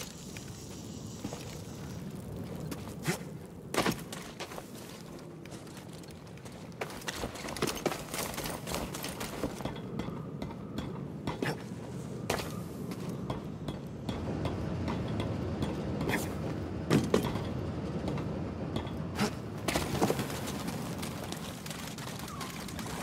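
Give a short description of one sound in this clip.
Footsteps run across grass and stone.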